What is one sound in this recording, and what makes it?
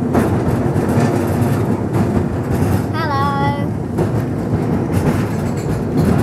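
A tram rumbles and rattles along its tracks.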